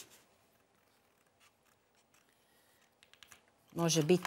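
Scissors snip through paper.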